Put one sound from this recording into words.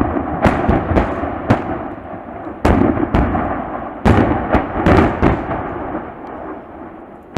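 Distant explosions boom one after another and rumble across the open valley.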